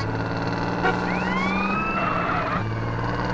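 Tyres squeal as a pickup truck turns sharply.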